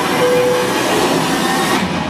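A jet airliner roars as it dives.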